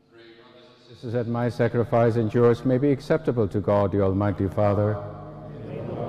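An elderly man sings slowly into a microphone, heard through loudspeakers in a large echoing hall.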